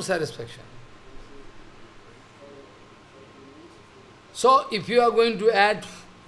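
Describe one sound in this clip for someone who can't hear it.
An elderly man speaks with animation into a microphone, with pauses.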